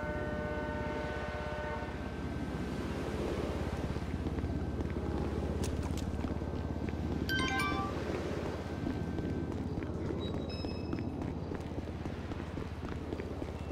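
Footsteps crunch on gravel as a man walks and then runs.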